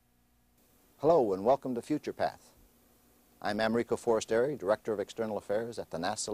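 An elderly man speaks calmly and clearly into a microphone, close by.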